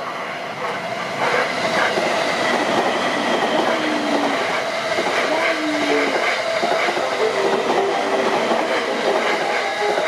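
An electric train hums steadily while standing at a platform.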